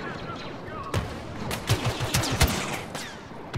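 Laser blasters fire in rapid bursts of sharp shots.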